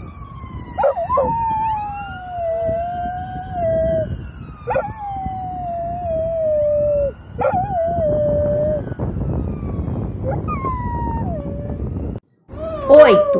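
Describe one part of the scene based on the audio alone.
A dog howls in long, falling wails outdoors.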